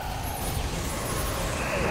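Blades whoosh and clash in a fight.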